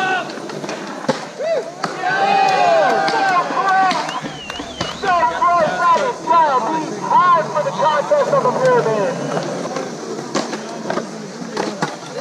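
Skateboard wheels roll and clatter on concrete.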